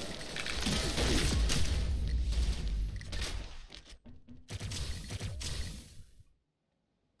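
Rapid gunfire blasts loudly.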